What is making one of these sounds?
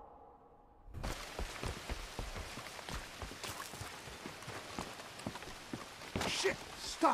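Footsteps creak and thud on wooden boards.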